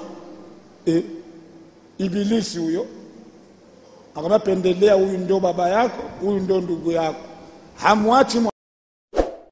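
An elderly man preaches loudly and with feeling through a microphone.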